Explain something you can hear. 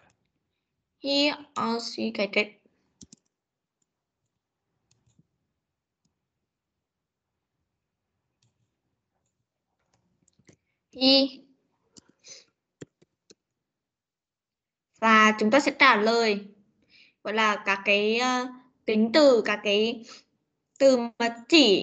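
A woman speaks clearly through an online call, in short phrases with pauses.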